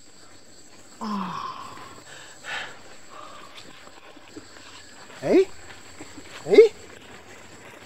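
A young man gasps and groans in pain.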